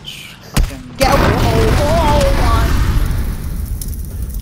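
An explosion bursts with a loud, rumbling roar.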